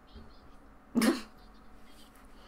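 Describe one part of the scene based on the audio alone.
A young woman laughs briefly, close by.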